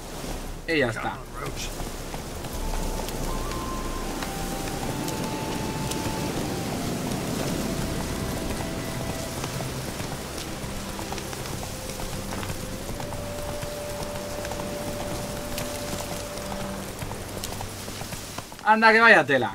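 A horse gallops, its hooves thudding on a dirt path.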